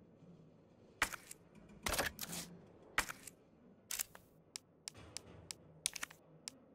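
Menu clicks tick in quick bursts.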